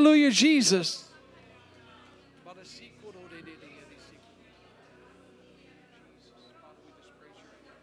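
A crowd of people murmur and pray quietly.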